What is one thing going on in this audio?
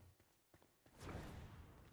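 A magic spell bursts with a soft whoosh.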